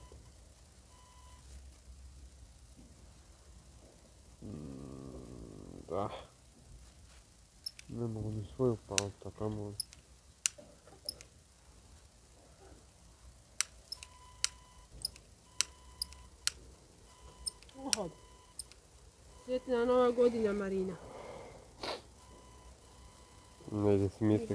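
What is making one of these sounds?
A device beeps in short, steady tones.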